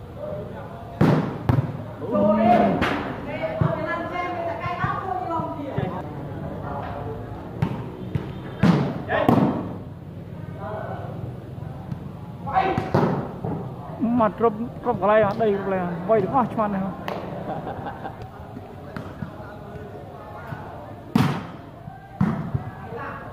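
Hands slap a volleyball.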